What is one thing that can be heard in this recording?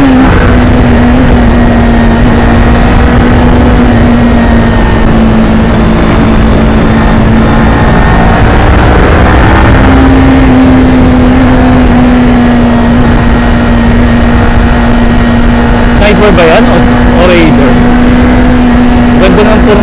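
A parallel-twin sport bike engine hums as the motorcycle cruises at speed.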